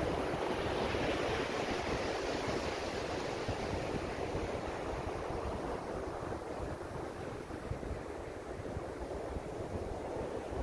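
Ocean surf breaks and washes onto a sandy beach.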